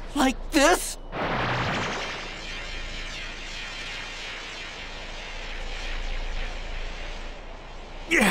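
A glowing energy charge hums and swells steadily.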